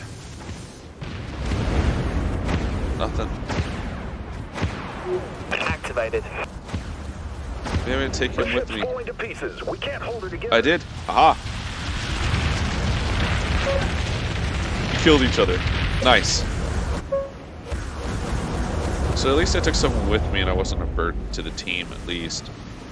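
A spaceship engine rumbles low and steady.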